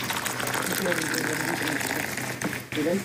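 Hot water pours into a cup.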